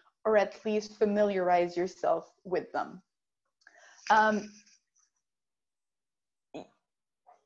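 A woman speaks calmly through an online call, in short phrases with pauses.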